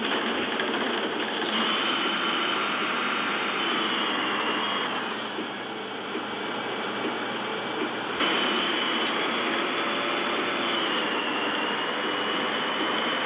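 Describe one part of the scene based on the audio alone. A bus engine hums steadily as the bus drives along a road.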